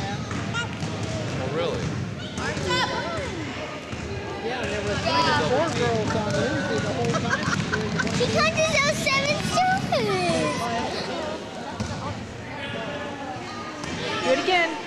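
Children shout and squeal excitedly in a large echoing gym.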